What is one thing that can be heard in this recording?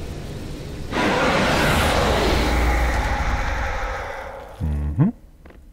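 A flamethrower roars with a loud, rushing burst of fire.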